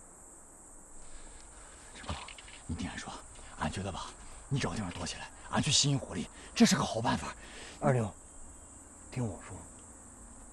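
A young man whispers urgently.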